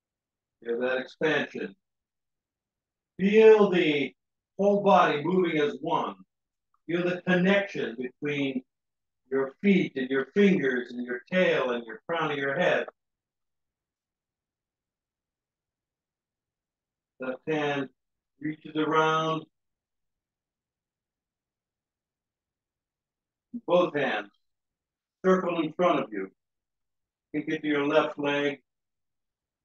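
An older man speaks calmly in short phrases with pauses, close to a microphone.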